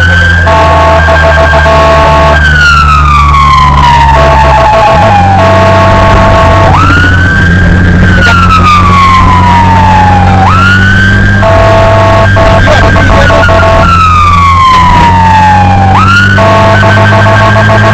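An ambulance siren wails loudly and switches between rising and falling tones.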